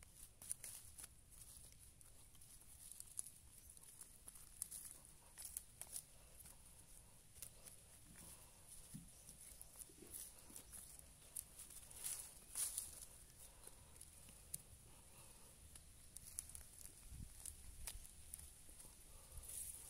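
A small trowel scrapes and digs into soft soil.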